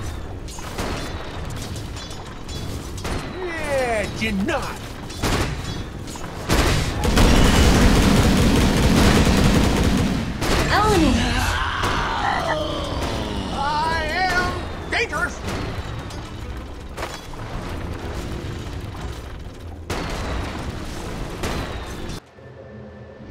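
Clashing weapons and bursting spell effects from a video game battle crackle and boom.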